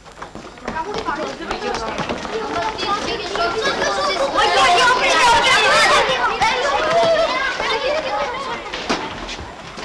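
Running footsteps clatter on a hard floor.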